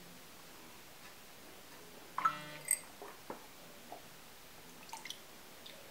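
A young woman sips water from a glass.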